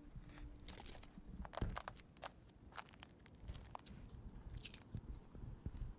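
A padded jacket rustles as the arms move close by.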